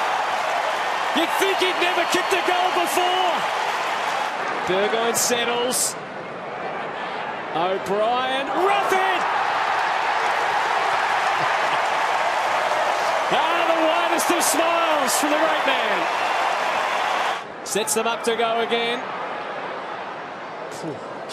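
A large crowd cheers and roars in a big stadium.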